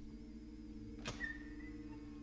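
A lock clicks open.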